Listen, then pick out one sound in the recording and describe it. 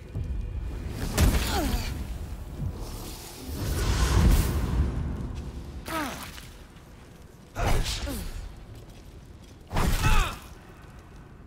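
Fiery blasts and explosions boom in bursts.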